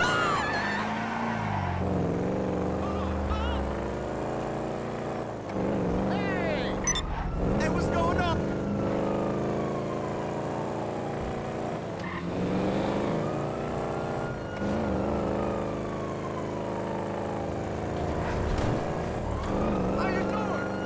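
A car engine revs and shifts gears as the car speeds along.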